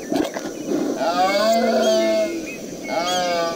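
A horse whinnies.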